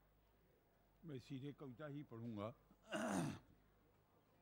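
An elderly man speaks slowly into a microphone, heard through loudspeakers.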